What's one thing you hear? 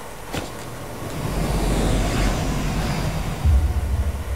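A swelling whoosh sweeps past and fades.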